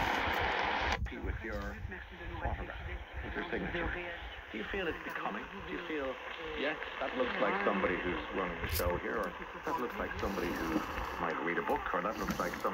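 A voice speaks faintly through a radio loudspeaker.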